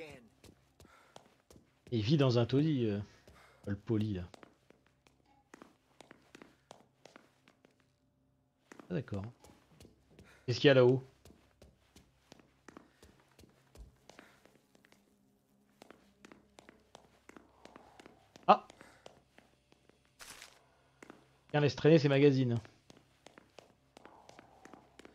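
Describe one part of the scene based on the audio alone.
Footsteps tap on hard floors and stairs indoors.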